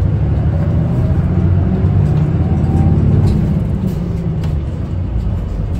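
A bus engine hums with a rising then falling pitch as it speeds up.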